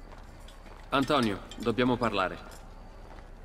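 A young man speaks calmly and close.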